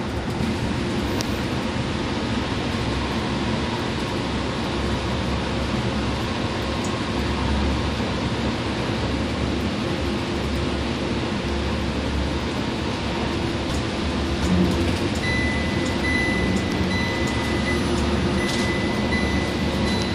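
Tyres roar on the road inside an echoing tunnel.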